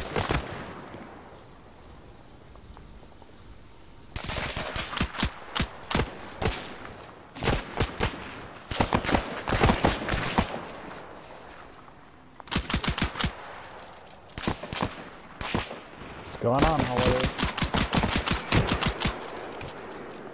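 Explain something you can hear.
Automatic rifles fire in rapid bursts.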